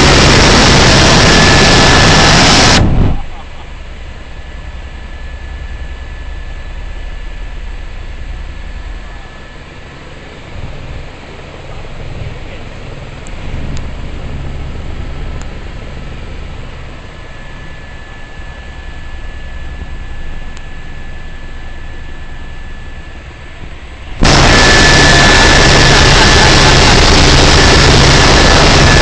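A helicopter engine and rotor roar steadily from inside the cabin, loud at first, then muffled, then loud again.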